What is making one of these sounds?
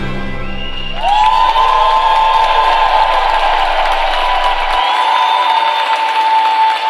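Music plays loudly over loudspeakers in a large echoing arena.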